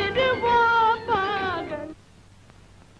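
An elderly woman sings in a high, wavering voice, then stops.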